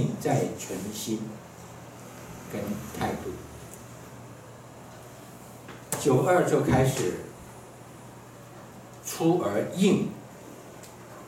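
An elderly man speaks calmly in short phrases through a microphone and loudspeaker.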